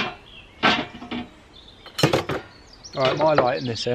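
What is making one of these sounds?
A metal mesh door clinks and scrapes as it is opened.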